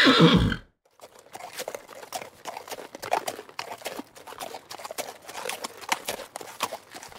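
Horses gallop with hooves thudding on grass.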